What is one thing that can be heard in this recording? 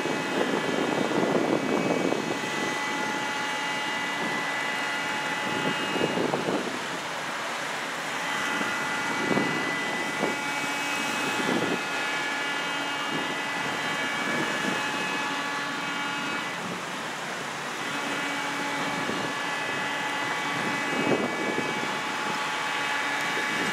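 Cars drive past one after another on a road outdoors.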